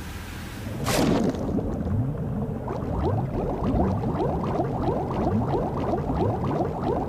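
Water bubbles and gurgles steadily underwater.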